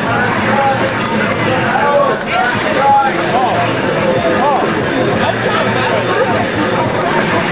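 Rapid hits and impacts crackle from a television speaker.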